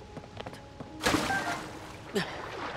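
A body plunges into water with a loud splash.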